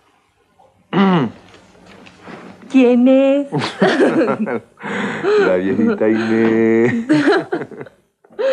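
A young woman laughs playfully close by.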